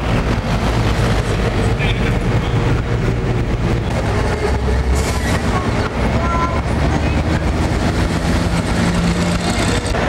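A box truck's engine rumbles as it drives past close by.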